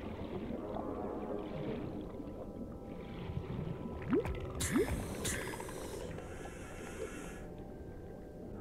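Water rumbles and gurgles steadily all around underwater.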